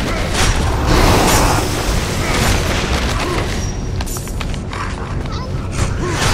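Weapons strike and clash in a fast fight.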